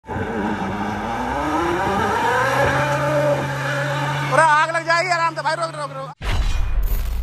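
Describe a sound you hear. Tyres spin and spray loose dirt.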